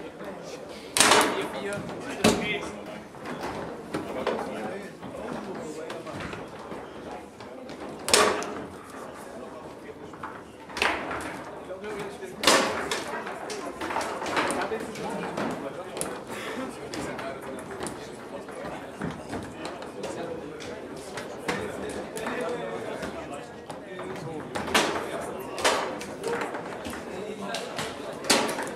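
A foosball ball cracks sharply against the rods and walls of the table.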